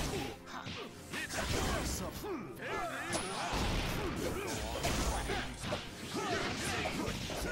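Blows land in quick succession with sharp thuds.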